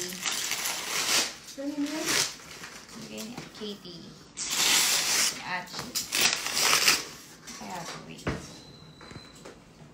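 Cardboard and paper rustle and crinkle as a box is unpacked.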